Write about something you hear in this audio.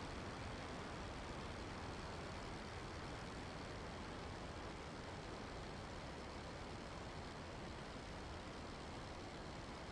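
A propeller engine drones steadily.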